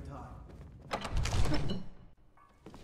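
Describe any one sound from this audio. A heavy wooden door swings open.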